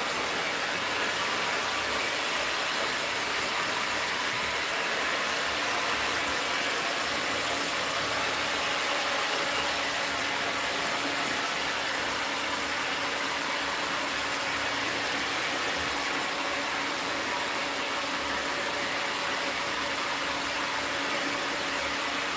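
A hair dryer blows with a steady loud roar.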